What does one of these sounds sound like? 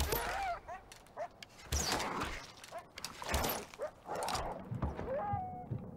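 An animal snarls and yelps.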